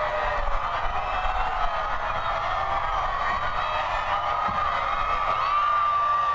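A large crowd cheers and screams excitedly outdoors.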